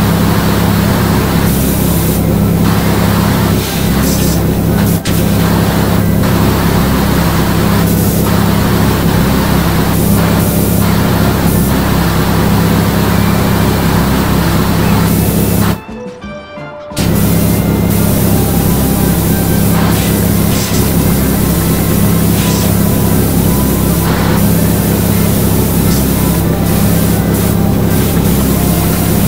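A pressure washer sprays water with a steady hissing roar.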